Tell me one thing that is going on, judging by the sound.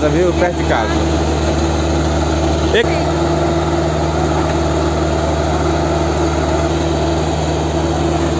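A drilling rig engine drones loudly and steadily.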